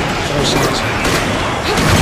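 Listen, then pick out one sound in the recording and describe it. A zombie groans and snarls.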